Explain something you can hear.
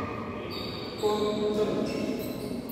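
A child calls out briefly.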